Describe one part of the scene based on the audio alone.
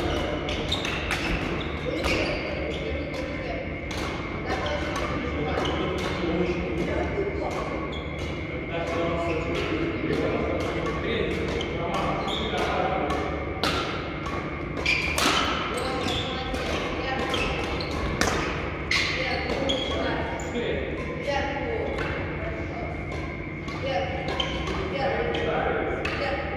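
Badminton rackets smack a shuttlecock back and forth in a large echoing hall.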